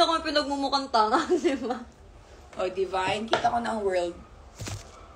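Another young woman laughs and talks nearby.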